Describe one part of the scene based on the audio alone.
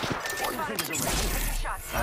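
A gun fires in quick bursts.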